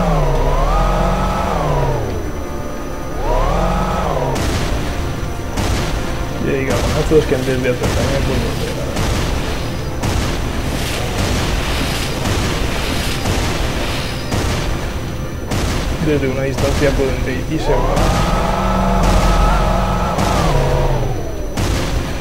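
A vehicle's engine hums and whines, rising and falling in pitch.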